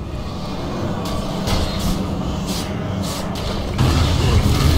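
A magic spell whooshes and crackles in bursts.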